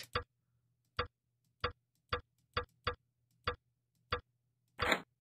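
Mechanical dials click as they turn.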